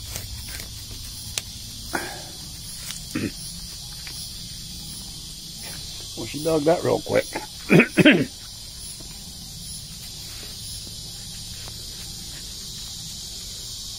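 A dog's paws scratch and dig in loose dirt.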